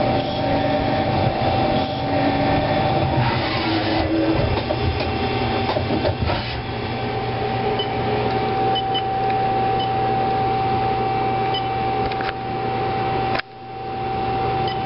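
A machine hums steadily with a high whine.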